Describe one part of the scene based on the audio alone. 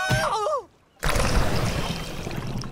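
Bubbles gurgle in water.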